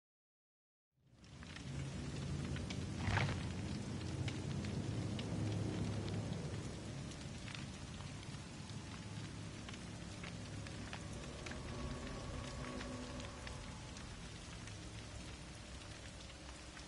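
Low, eerie ambient music drones steadily.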